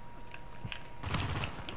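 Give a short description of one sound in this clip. A rifle fires a rapid burst.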